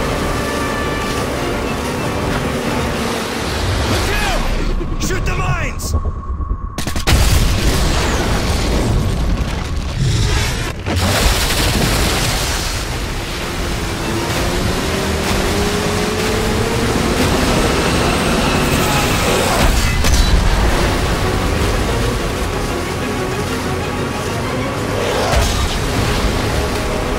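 A boat engine roars as it speeds over choppy water.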